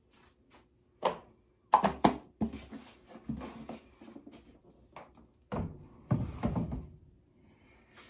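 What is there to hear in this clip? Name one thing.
A plastic bottle knocks and rattles close by.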